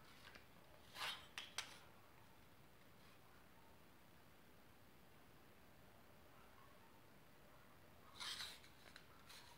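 A pencil scratches lightly on a wall.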